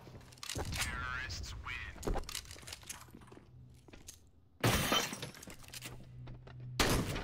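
Metal weapon parts click and clack as guns are switched.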